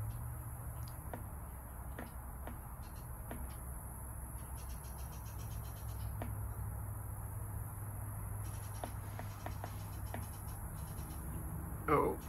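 A man gulps a drink from a can.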